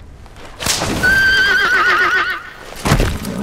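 A horse neighs loudly as it rears up.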